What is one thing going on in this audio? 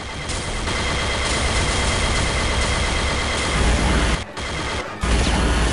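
A futuristic energy gun fires rapid bursts.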